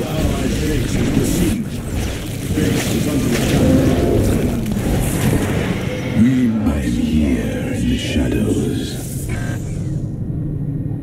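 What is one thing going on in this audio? Weapons fire and blasts go off in a noisy battle.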